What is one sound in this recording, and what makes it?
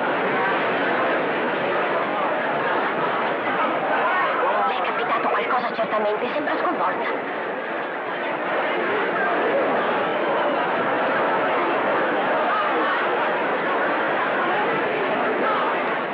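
A large crowd murmurs and chatters steadily.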